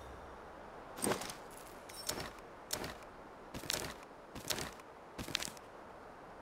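Short soft clicks sound one after another.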